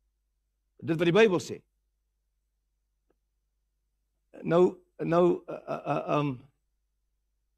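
A middle-aged man speaks with animation through a microphone, with pauses between phrases.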